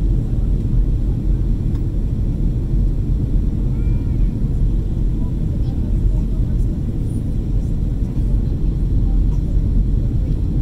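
A jet engine roars steadily in a low, deep rumble.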